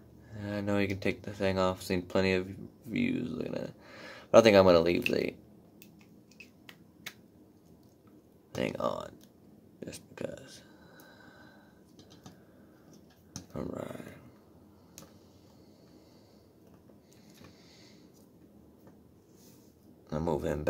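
Small plastic toy joints click softly as hands move them.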